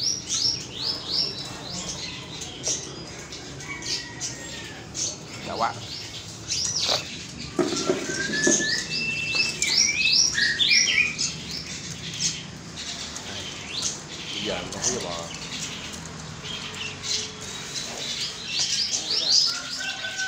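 Many caged birds chirp and tweet all around.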